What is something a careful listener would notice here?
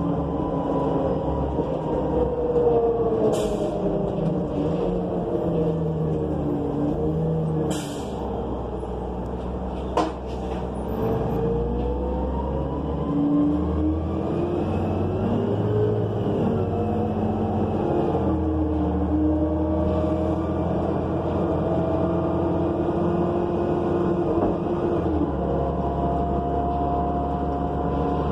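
The bus interior rattles and clatters over the road.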